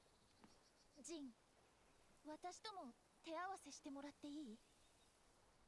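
A young woman speaks calmly and brightly, close by.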